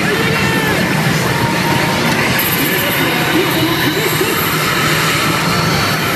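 A pachinko machine plays loud electronic music and sound effects.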